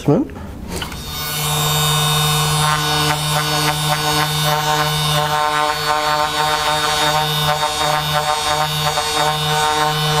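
A handheld massage gun buzzes steadily against a body.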